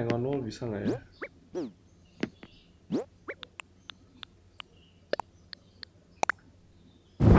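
Short electronic menu blips sound quickly one after another.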